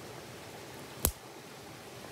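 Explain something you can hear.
A dry stick snaps sharply.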